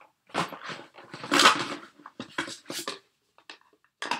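Paper rustles in someone's hands.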